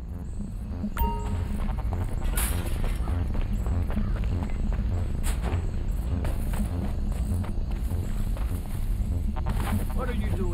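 Footsteps run quickly across dry dirt.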